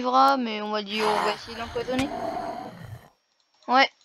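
A fiery blast roars briefly.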